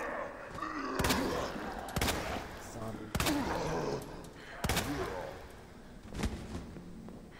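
Gunshots ring out sharply several times.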